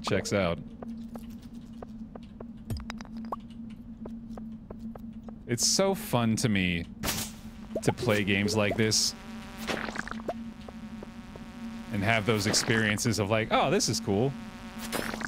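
A man talks casually and with animation into a close microphone.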